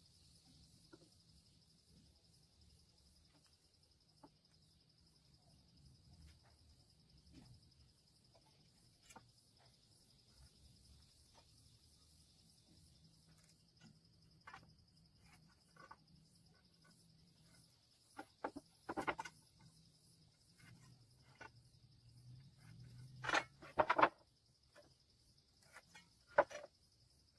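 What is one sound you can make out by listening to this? Wooden boards knock and clatter as they are handled.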